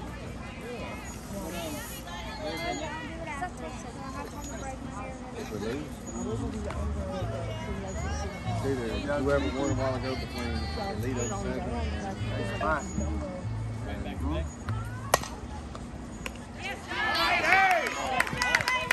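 Players and spectators chatter and call out outdoors.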